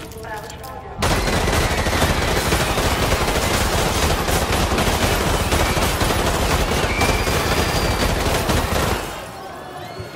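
Machine guns fire in long, rapid bursts that echo through a large hall.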